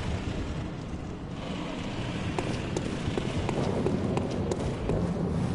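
Footsteps tap on stone stairs.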